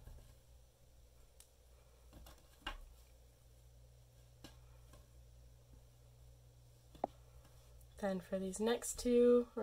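Thin threads rustle softly as fingers tie knots.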